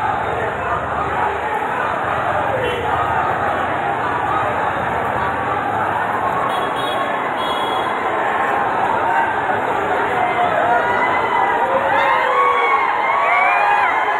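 A large crowd of young men murmurs and shouts loudly outdoors.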